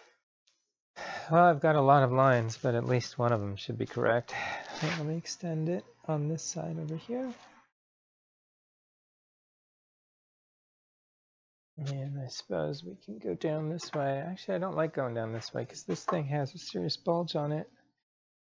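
A man speaks calmly and close by, with pauses.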